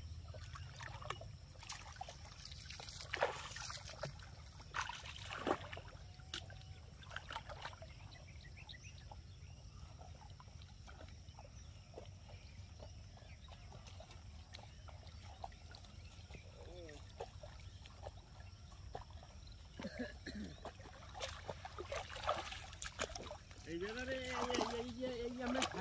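Water splashes as a man wades through shallow water.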